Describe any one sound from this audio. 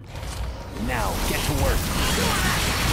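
Swords clash and energy blasts crackle in a fight.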